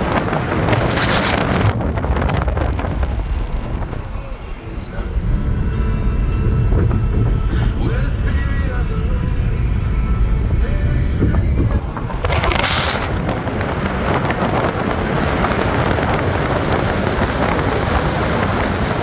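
A car drives along an asphalt road, heard from inside.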